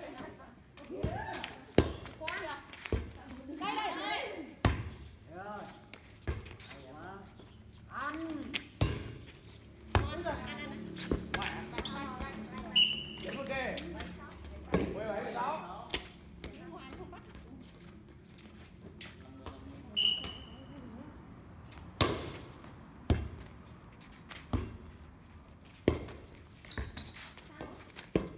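A volleyball thumps off players' hands and forearms again and again.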